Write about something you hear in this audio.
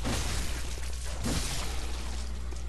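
A blade slashes through the air with a sharp whoosh.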